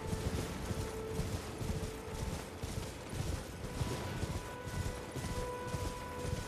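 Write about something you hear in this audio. Hooves gallop steadily over soft ground.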